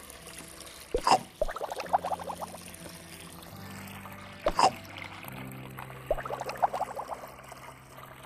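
Bubbles pop with soft, bright plinking sounds.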